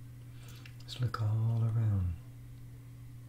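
An elderly man speaks briefly and calmly into a close microphone.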